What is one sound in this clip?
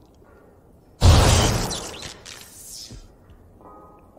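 Thunder cracks loudly and rumbles away.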